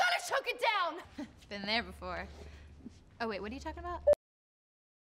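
A young woman answers with amusement.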